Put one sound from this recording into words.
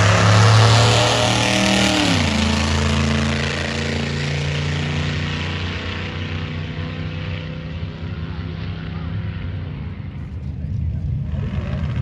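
A loud race car engine roars as the car speeds away and fades into the distance.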